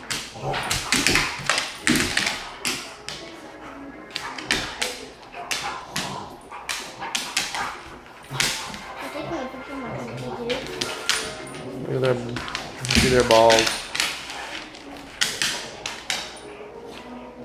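Two dogs growl and snarl as they play-fight.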